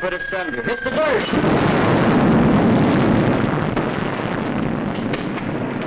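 Stone masonry crashes down with a loud rumbling roar.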